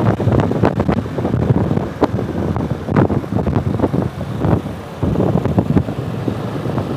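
A motorcycle engine hums steadily close by as it rides along.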